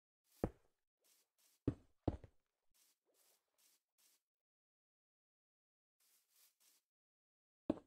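Footsteps crunch softly on sand.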